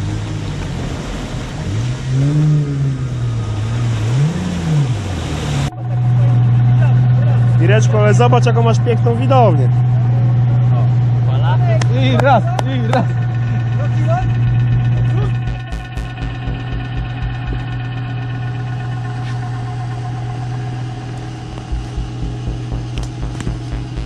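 A vehicle engine revs and drones steadily nearby.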